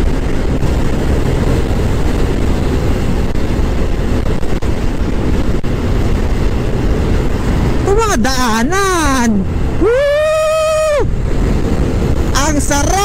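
Wind roars steadily against a moving motorcycle.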